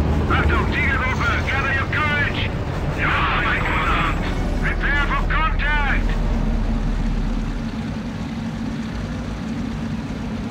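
Tank engines rumble low and steadily.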